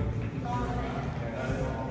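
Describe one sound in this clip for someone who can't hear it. A crowd of men and women talk and murmur nearby in an echoing hall.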